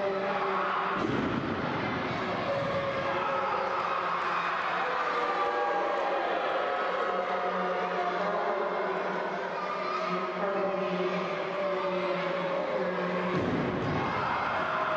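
A wrestler slams onto a ring mat with a heavy thud that echoes through a large hall.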